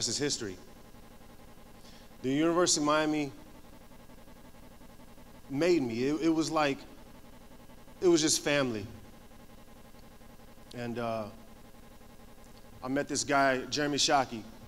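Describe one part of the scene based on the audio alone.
A young man speaks through a microphone in short phrases with long pauses, heard over a loudspeaker.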